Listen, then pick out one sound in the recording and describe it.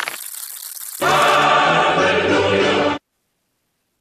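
A bright heavenly choir chord rings out and then cuts off.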